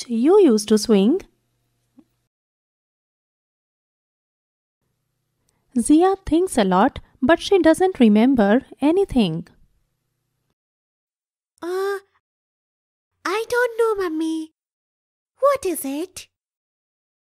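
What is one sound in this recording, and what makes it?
A young girl speaks in a lively, animated voice, close to a microphone.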